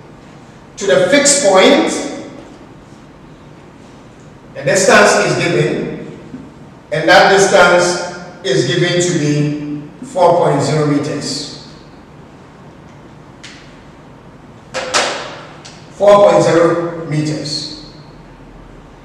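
A man speaks calmly in short phrases, with pauses between them.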